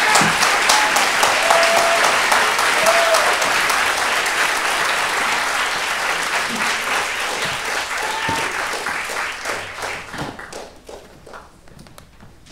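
An audience applauds loudly in a large hall, and the applause slowly dies away.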